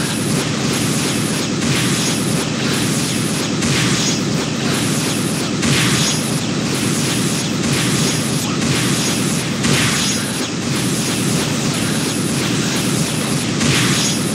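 Rapid game hit effects sound in quick bursts.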